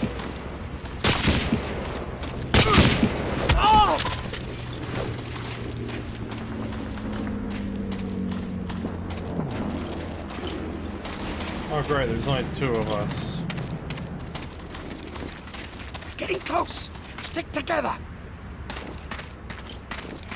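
Footsteps crunch steadily over dirt and grass.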